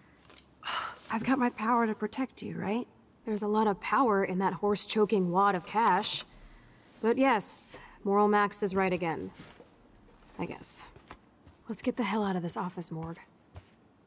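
A young woman speaks casually, close by.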